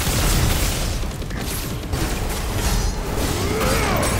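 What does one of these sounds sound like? A heavy blow lands with a deep crunching impact.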